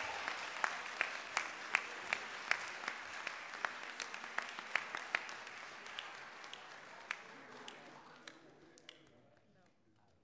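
A crowd applauds with scattered sharp claps nearby, then fades away.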